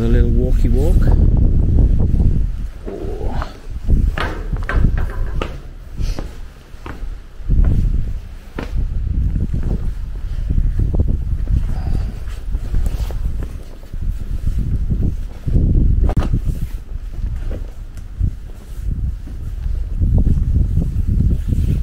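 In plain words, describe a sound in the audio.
Wind gusts and buffets the microphone outdoors.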